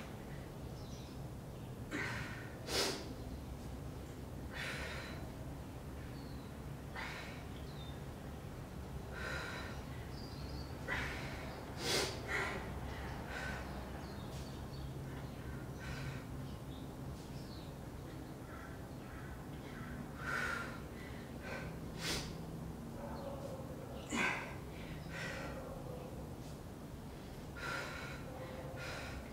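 A woman breathes sharply with each dumbbell lift.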